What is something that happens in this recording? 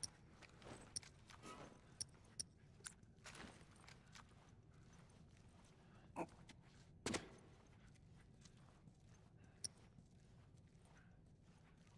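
A weapon clicks and rattles as it is handled.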